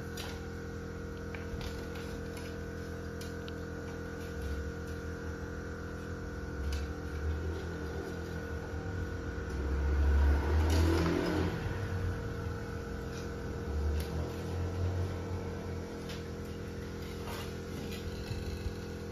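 Wire rattles and clicks as a cage is assembled by hand.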